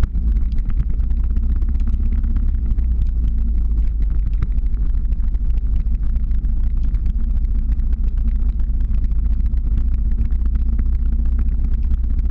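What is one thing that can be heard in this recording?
Wind rumbles loudly against the microphone.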